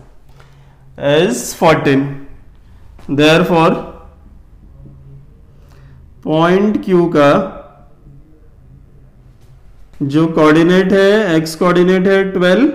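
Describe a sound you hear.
A man explains calmly and clearly, close by, in bursts with pauses.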